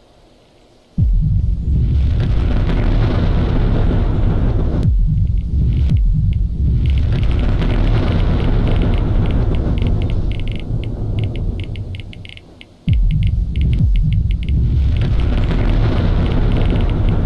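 A huge explosion booms and rumbles loudly.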